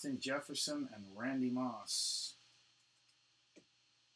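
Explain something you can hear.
A plastic card sleeve crinkles and rustles.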